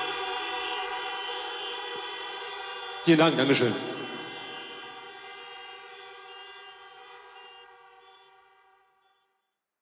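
A sustained keyboard chord rings out through loudspeakers and slowly fades away.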